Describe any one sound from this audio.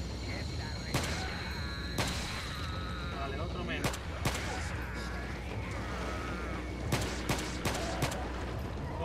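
Pistol shots crack sharply, several times.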